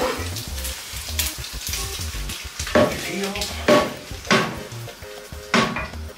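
A metal pan clanks against an oven.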